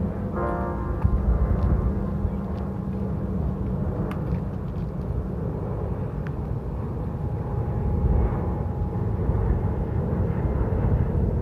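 Wind buffets the microphone outdoors with a steady low rumble.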